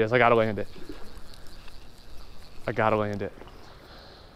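A fishing reel whirs sharply as line is pulled off it.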